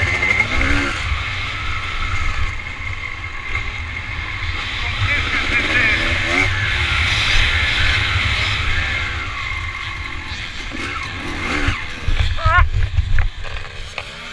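A motorcycle engine revs hard, rising and falling in pitch.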